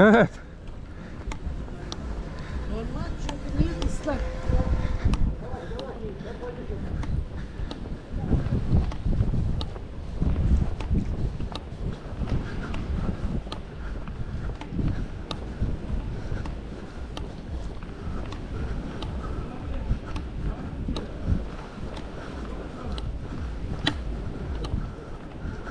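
Trekking pole tips click sharply on paving stones at a steady pace.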